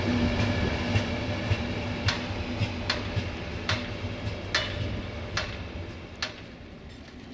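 A train rolls away with wheels clacking rhythmically over rail joints.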